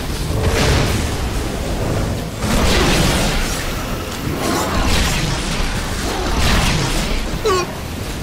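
A blade slashes through flesh in repeated wet, tearing bursts.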